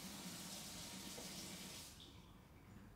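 Water rushes from a tap into a sink.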